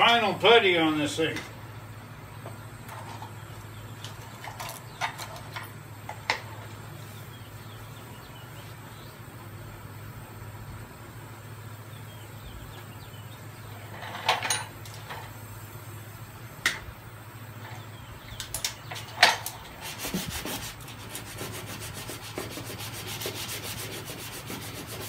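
A spray gun hisses steadily close by.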